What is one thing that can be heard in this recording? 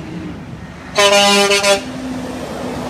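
A truck's air horn blasts loudly.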